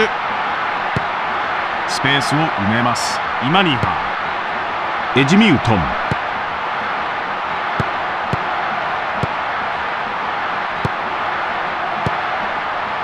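A football is kicked with short, dull thuds now and then.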